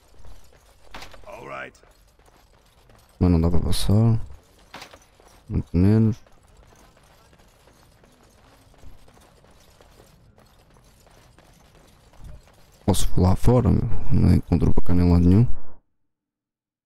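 A young man talks in short, lively bursts close to a microphone.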